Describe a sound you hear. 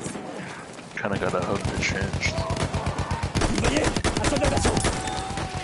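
Rapid gunfire rattles in a loud battle.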